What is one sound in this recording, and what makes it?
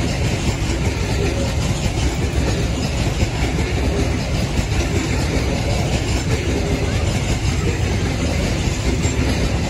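A long freight train rumbles and clatters past on the tracks close by.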